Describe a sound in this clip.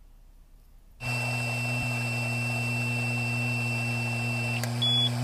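A handheld device emits a steady high beep.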